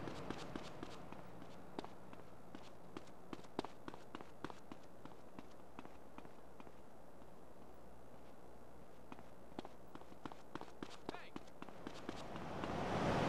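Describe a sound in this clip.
Footsteps slap quickly on pavement.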